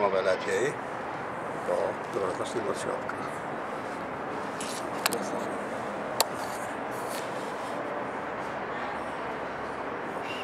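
Wind blows steadily, high up outdoors.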